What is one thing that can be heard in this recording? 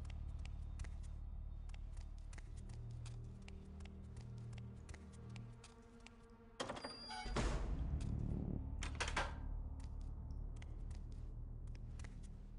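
Footsteps tap on a hard floor, echoing slightly.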